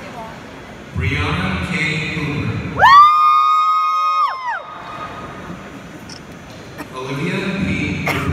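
An audience cheers and claps.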